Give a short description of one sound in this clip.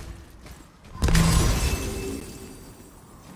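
A magical healing burst whooshes.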